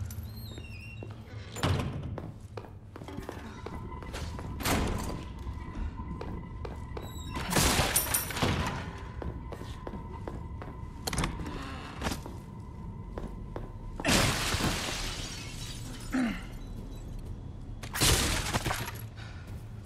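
Footsteps tread slowly.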